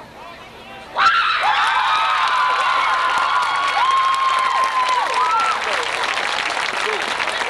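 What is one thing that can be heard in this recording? A crowd in the stands of an outdoor stadium cheers and whistles.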